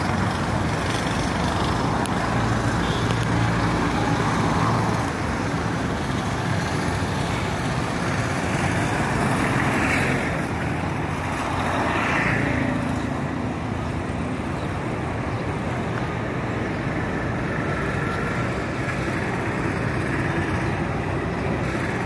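Traffic rumbles past on a road nearby.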